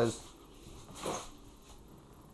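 A refrigerator door is pulled open with a soft thud.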